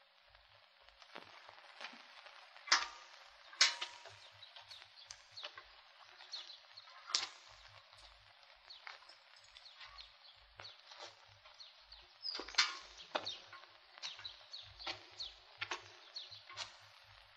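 Metal buckets creak and clank as they swing.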